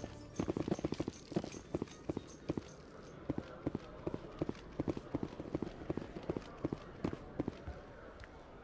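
Footsteps tap quickly and steadily on a hard floor.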